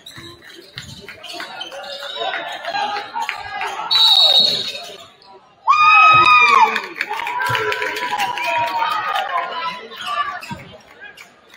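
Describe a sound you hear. A crowd in the stands cheers and shouts.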